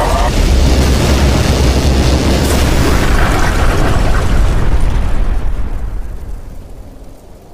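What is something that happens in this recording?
A loud explosion booms and rumbles, then slowly fades away.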